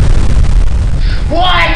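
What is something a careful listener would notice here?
A young man speaks loudly up close.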